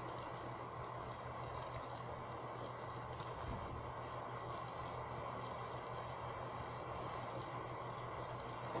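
A car engine drones steadily from a small laptop speaker.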